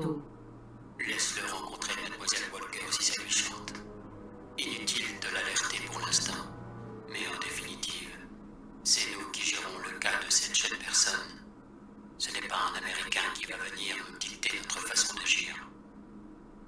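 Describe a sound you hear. A middle-aged man speaks sternly through a small loudspeaker.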